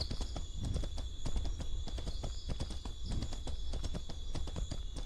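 Footsteps rustle quickly through dense undergrowth.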